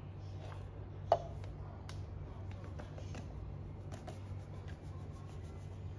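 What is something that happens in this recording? Flour pours softly into a plastic cup.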